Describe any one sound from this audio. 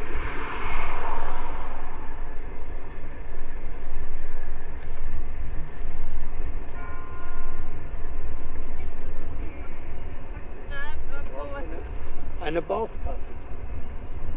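Wind buffets the microphone steadily outdoors.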